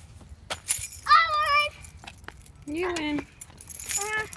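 A young girl talks brightly nearby.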